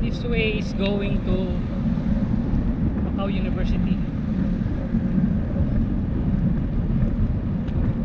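Bicycle tyres roll steadily on smooth pavement.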